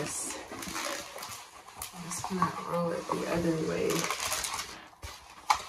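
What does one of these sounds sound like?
A large plastic sheet rustles and crinkles as it is rolled up.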